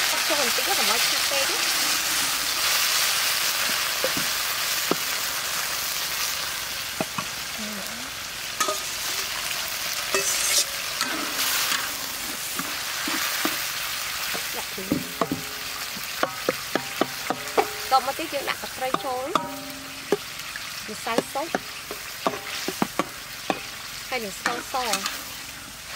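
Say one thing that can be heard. Sauce sizzles and bubbles in a hot pan.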